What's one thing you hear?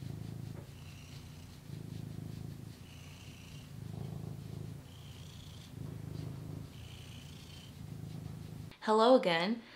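A cat purrs loudly and steadily up close.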